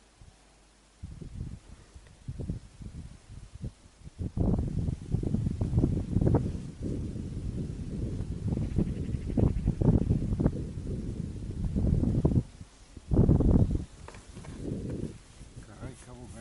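Footsteps crunch steadily on packed snow.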